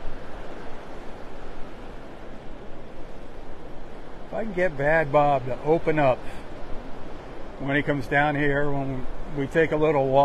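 Small waves wash and break gently onto the shore.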